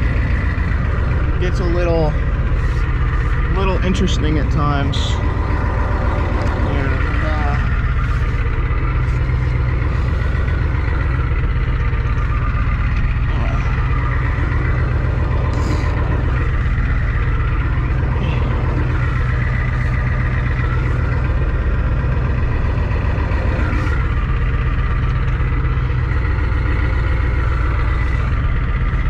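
A car engine hums and rumbles steadily from inside the cab.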